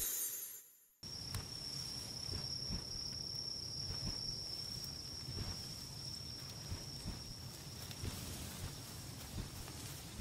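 A large bird flaps its wings heavily.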